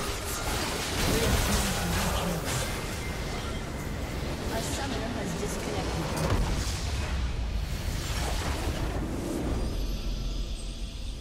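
Game spell effects crackle and explode loudly in a busy battle.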